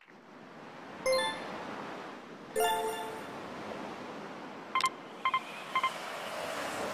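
Short electronic chimes ring out several times.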